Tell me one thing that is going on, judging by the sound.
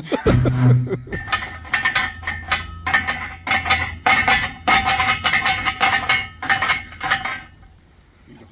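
A metal pry bar creaks and squeals under strain.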